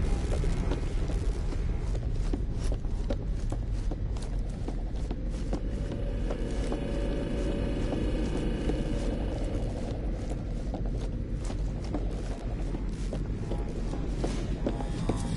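Heavy footsteps clank quickly on a metal floor.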